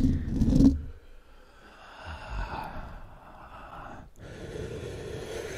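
A young man whispers softly close to a microphone.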